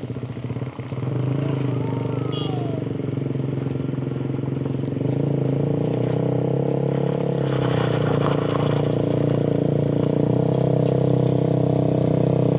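A car engine hums as the car climbs slowly toward the listener.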